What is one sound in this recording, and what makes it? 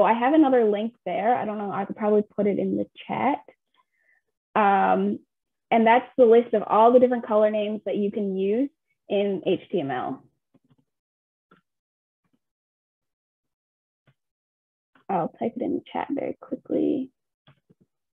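A young woman speaks calmly into a microphone, as if on an online call, with long pauses.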